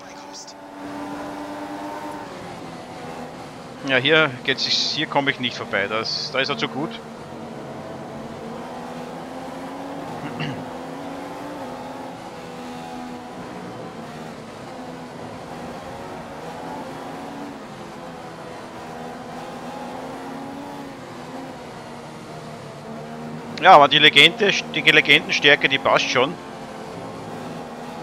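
A racing car engine whines at high revs, rising and falling as it shifts gears.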